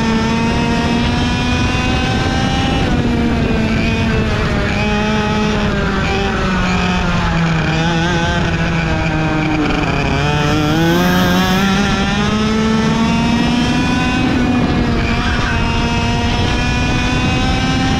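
A kart engine whines loudly up close, dropping in pitch into a bend and revving back up.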